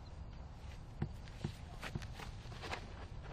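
Footsteps thud quickly on the ground.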